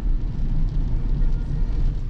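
Rain taps on a windscreen.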